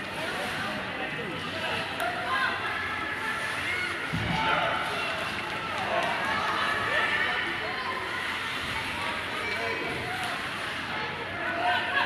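Skates scrape and glide on ice.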